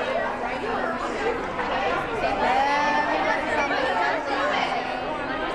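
Many young women talk and laugh loudly over each other at close range.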